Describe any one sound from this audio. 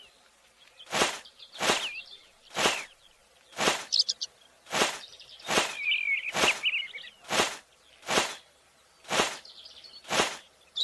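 A hoe thuds into soil again and again at a steady pace.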